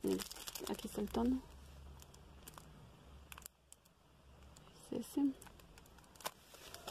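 Plastic packaging rustles and crinkles as items are handled.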